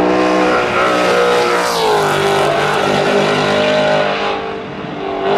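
A race car engine roars loudly close by, revving up and down as it shifts gears.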